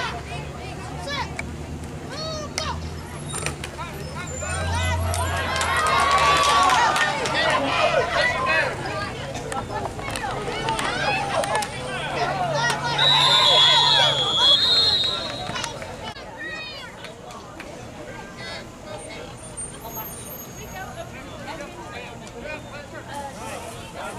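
Young players call out to one another across an open field.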